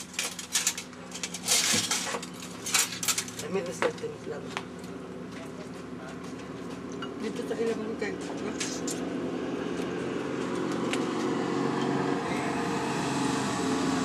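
Young women talk quietly nearby.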